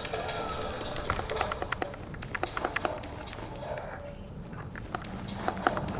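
Papers rustle as hands rummage through a crate.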